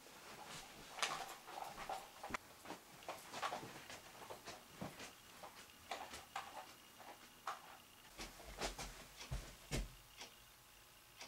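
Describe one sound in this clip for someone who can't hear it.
Footsteps thud on the floor close by.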